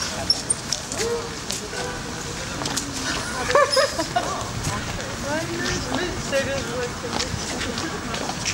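Several people talk nearby as they walk past.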